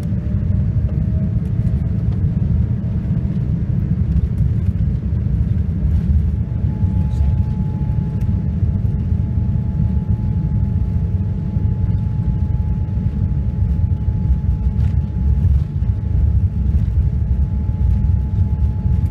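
Jet engines roar steadily as a plane speeds along a runway, heard from inside the cabin.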